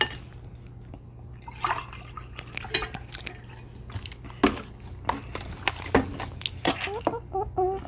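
Forks clink and scrape against plates.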